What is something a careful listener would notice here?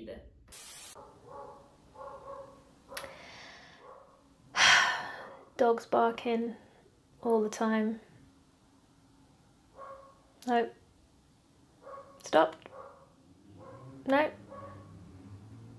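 A woman speaks with animation close by, pausing often.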